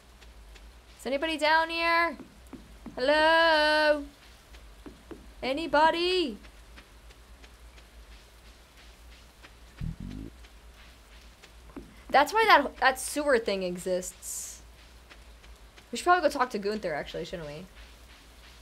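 A young woman speaks expressively into a close microphone, in short bursts.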